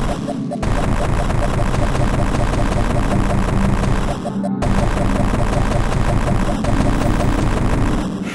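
Fast electronic game music plays with a driving, pulsing beat.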